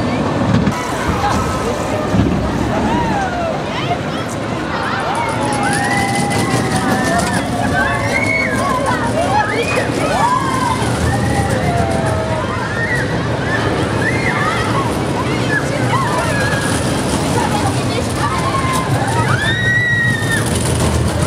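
Riders scream and shriek with excitement.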